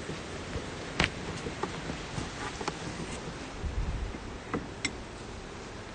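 Wooden hive boxes knock and scrape as a beekeeper handles them.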